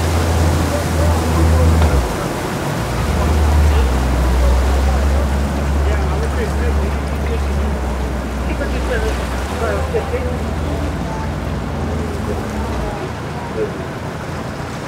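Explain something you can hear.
An outboard motor hums steadily as a boat moves slowly away.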